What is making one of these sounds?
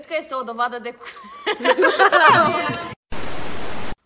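A young woman speaks with animation.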